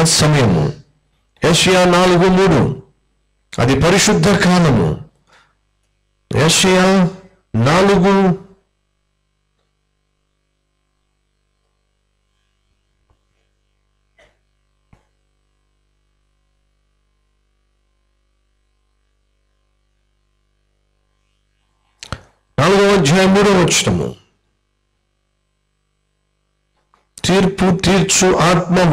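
A man speaks calmly into a microphone, reading out in bursts with long pauses.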